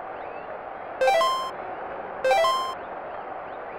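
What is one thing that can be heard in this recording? Electronic menu blips sound twice.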